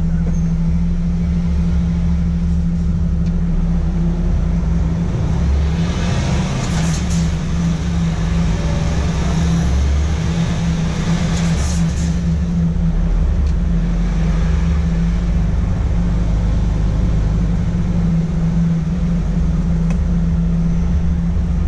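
A truck's diesel engine hums steadily from inside the cab.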